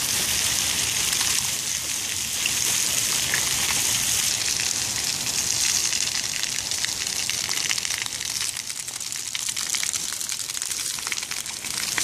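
Dogs' paws patter and splash through shallow water.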